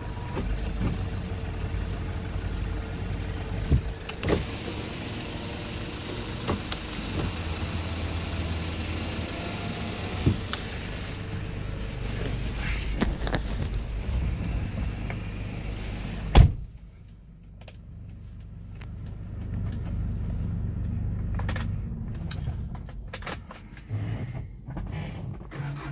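A vehicle engine idles with a low, steady rumble.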